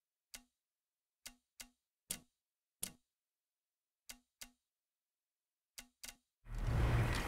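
Short soft menu beeps sound one after another.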